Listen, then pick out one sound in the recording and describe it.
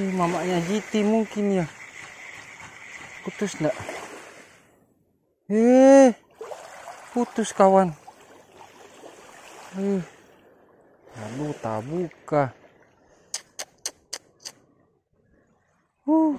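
Small waves lap gently at a shore outdoors.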